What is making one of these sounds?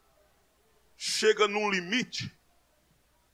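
A man shouts with animation through a microphone in a large echoing hall.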